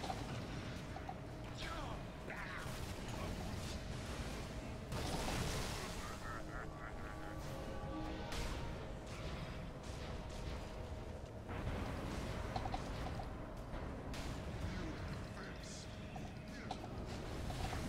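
A fiery beam roars in a game.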